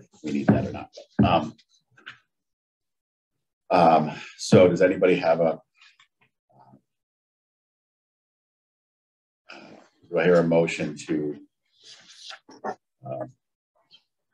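An older man reads out aloud through a microphone, with pauses.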